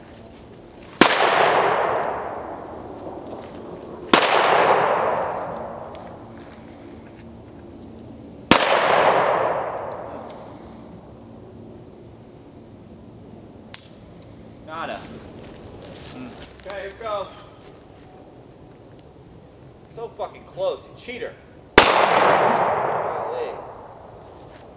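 Gunshots crack and echo outdoors.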